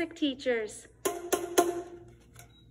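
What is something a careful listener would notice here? Plastic tubes are struck together with hollow knocks.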